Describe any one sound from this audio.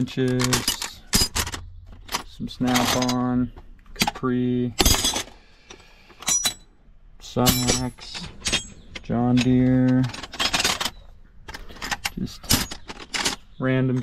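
Metal wrenches clink against each other.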